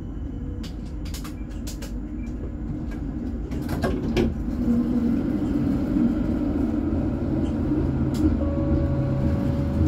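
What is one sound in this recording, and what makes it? A tram rumbles past close by on its rails.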